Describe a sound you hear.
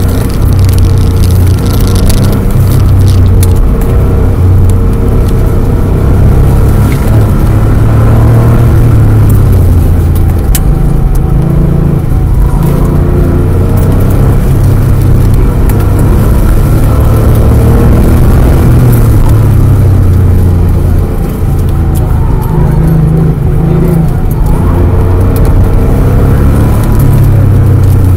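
A car engine roars loudly, revving up and down.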